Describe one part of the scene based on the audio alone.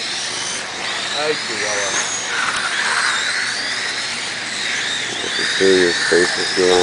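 Small electric model cars whine at high pitch as they race around a track, outdoors.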